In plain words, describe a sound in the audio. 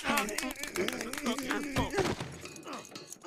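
A man yells loudly as he struggles.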